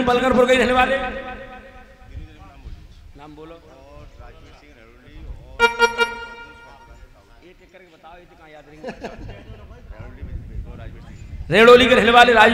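A man talks with animation through a microphone and loudspeaker.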